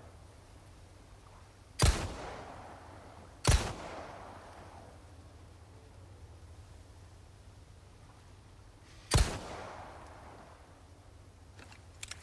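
A shotgun is pumped with a metallic click.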